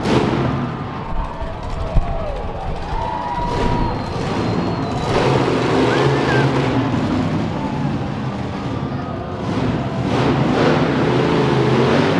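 Monster truck engines roar loudly in a large arena.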